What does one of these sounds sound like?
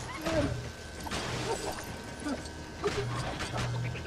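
Sparks crackle and metal clangs as a machine is smashed.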